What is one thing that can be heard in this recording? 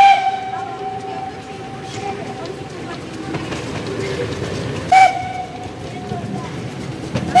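A steam locomotive chugs in the distance as it approaches.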